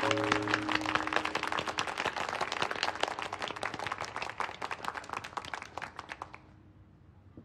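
A group of people applauds loudly and then stops.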